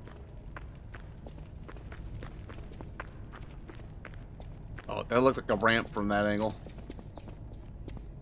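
Heavy armoured footsteps clank on a stone floor.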